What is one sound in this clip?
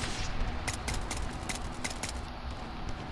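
A sniper rifle fires a sharp shot.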